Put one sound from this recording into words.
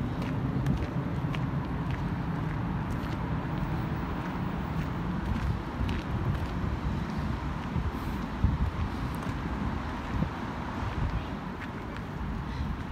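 Wind blows outdoors through leafy trees.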